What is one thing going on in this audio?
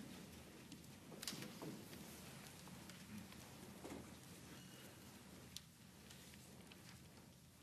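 Quiet rustling and shuffling of a seated crowd echo through a large hall.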